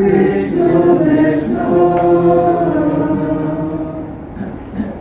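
A man chants in a reverberant space.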